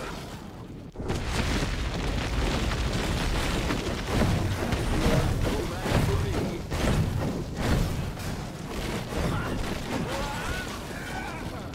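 A horde of skeleton monsters clatters and screeches in battle.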